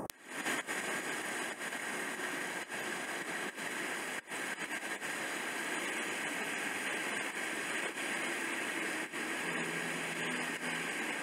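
Fast water rushes and churns loudly, outdoors.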